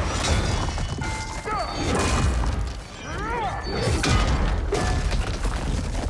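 Metal weapons clash in a fight.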